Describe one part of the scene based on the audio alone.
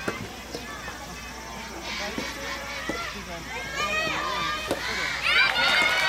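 A tennis ball is struck by a racket with sharp pops.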